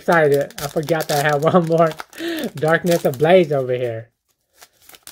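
A foil wrapper crinkles and tears as it is pulled open.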